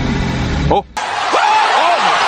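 A man shouts excitedly.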